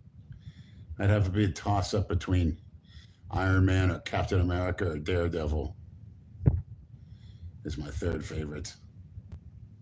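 A middle-aged man speaks with feeling close to a phone microphone.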